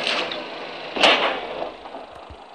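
An explosion booms loudly.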